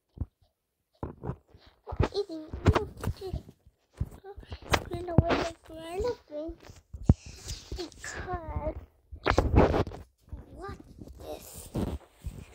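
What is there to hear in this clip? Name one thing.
A young girl talks with animation close to a microphone.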